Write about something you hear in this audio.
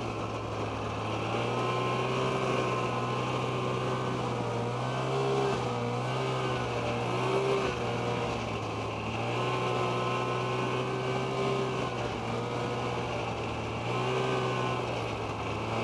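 A snowmobile engine drones loudly, rising and falling in pitch as it speeds up and slows down.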